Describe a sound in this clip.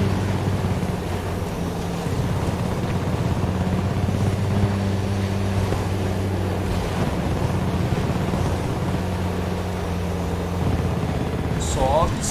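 A tank engine rumbles and its tracks clatter steadily.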